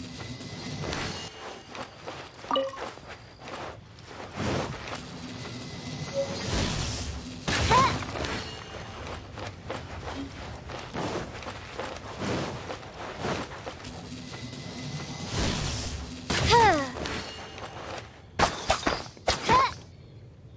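Footsteps patter quickly on sand.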